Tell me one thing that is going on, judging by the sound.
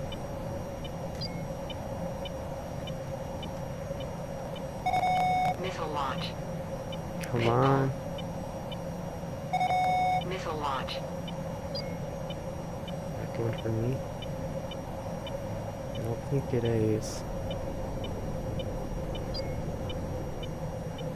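A jet engine hums steadily inside a cockpit.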